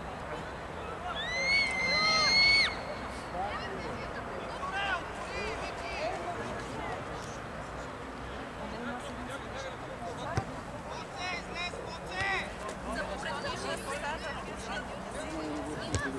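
Young players shout and call to each other across an open field.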